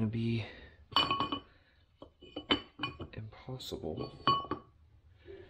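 Metal parts clink and rattle as they are handled.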